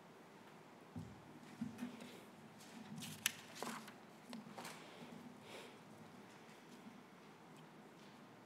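A second woman reads out softly at a microphone.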